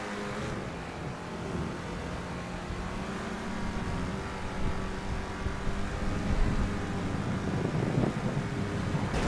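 A car engine hums steadily as the car drives along a road.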